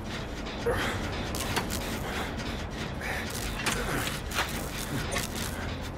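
Metal parts clank and rattle as a machine is worked on.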